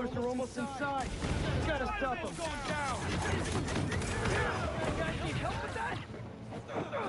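Game fight sounds of punches and whooshing swings ring out.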